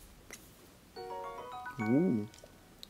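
A short bright chiming tune plays in a video game.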